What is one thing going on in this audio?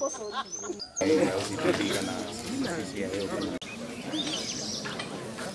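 A crowd of men and women murmur and talk outdoors.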